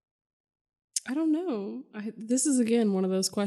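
A young woman speaks calmly and close into a microphone.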